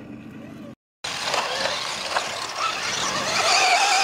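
A toy race car's motor buzzes loudly as it speeds along a dirt track.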